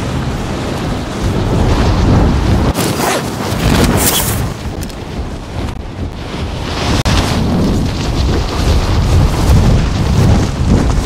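Wind rushes past during a freefall.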